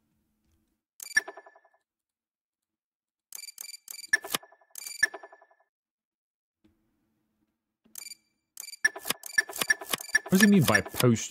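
Short electronic clicks and chimes sound as menu buttons are pressed.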